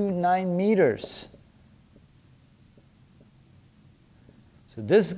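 A man speaks calmly and clearly, as if lecturing, close by.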